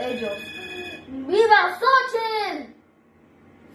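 A young child's voice rings out brightly.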